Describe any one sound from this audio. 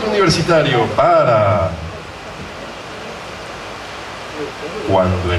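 A young man speaks into a microphone in a large hall.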